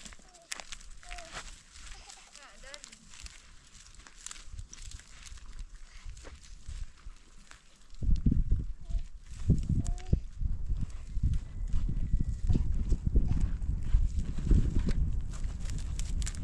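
Footsteps crunch on dry, stony soil.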